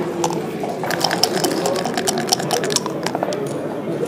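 Dice rattle and tumble on a board.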